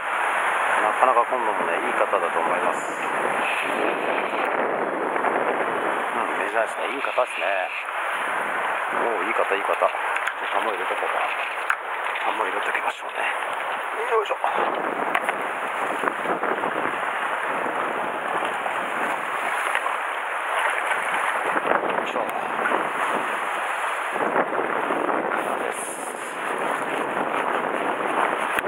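Waves wash and splash against rocks close by.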